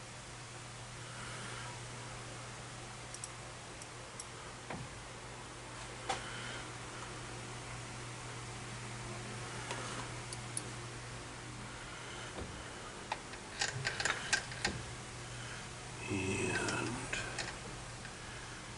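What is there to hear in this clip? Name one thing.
A metal cutting tool scrapes against a spinning metal ring.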